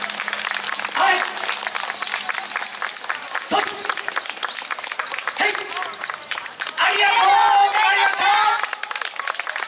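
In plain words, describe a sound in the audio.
Women dancers shout calls in chorus outdoors.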